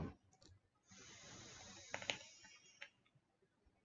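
A man draws on an electronic cigarette with a soft crackling hiss.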